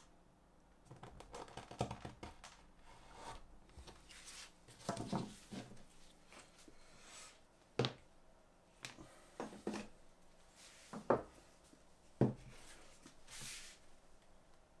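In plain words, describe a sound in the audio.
Leather rustles and scrapes under a craftsman's hands.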